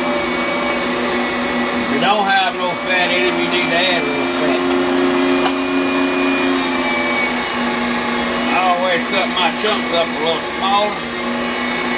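An electric meat grinder motor hums steadily.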